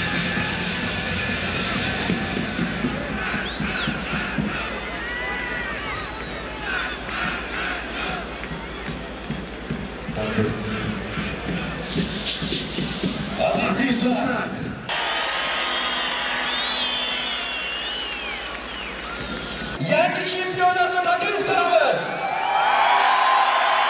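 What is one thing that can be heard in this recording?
Fans in a crowd whistle shrilly.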